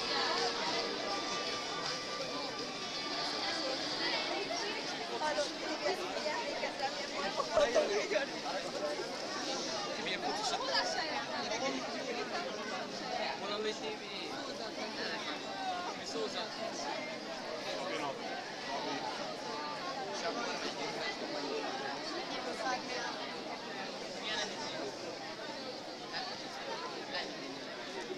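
A large crowd of young people chatters all around outdoors.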